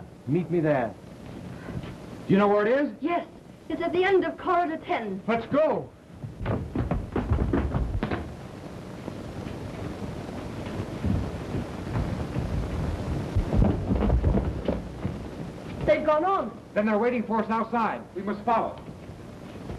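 A woman speaks urgently, heard through an old, muffled recording.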